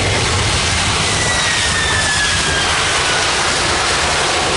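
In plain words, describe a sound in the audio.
A jet engine whines with a falling pitch.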